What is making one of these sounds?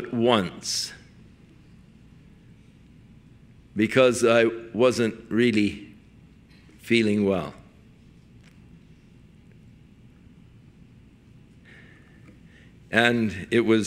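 An elderly man speaks emphatically into a microphone, with pauses between phrases.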